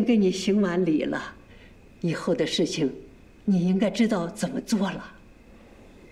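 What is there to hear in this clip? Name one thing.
An elderly woman speaks calmly up close.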